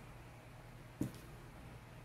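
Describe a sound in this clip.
A small bottle taps down on a table.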